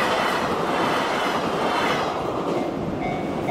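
A train rumbles past close by, wheels clattering on the rails.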